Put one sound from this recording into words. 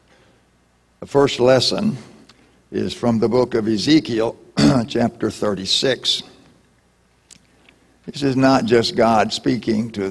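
An elderly man reads out through a microphone in a reverberant hall.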